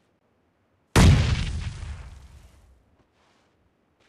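A rifle fires a single loud shot that echoes and fades away.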